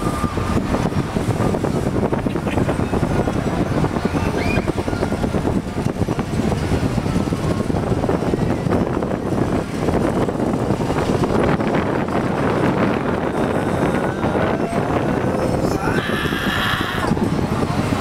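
Wind blows loudly and steadily outdoors at a height.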